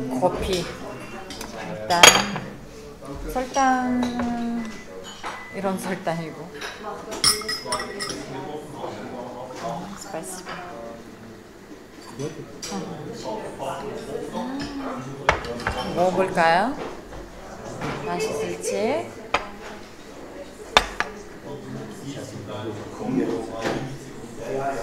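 A young woman talks casually, close by.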